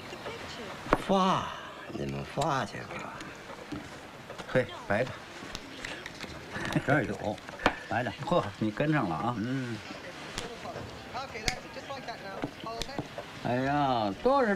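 Elderly men talk calmly.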